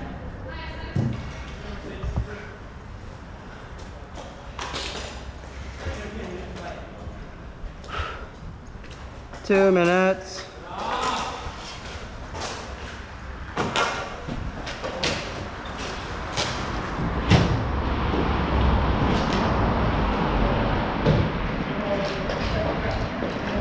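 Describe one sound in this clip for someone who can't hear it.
Hockey sticks clack against a ball on a hard court.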